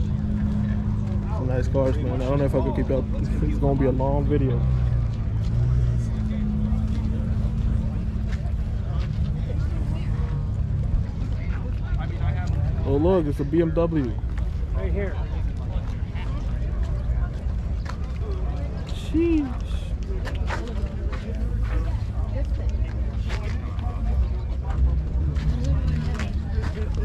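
A crowd of men and women chats outdoors.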